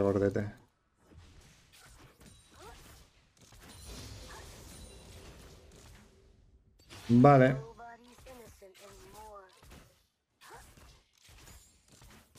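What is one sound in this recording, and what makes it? A young man talks into a close microphone in short, animated bursts.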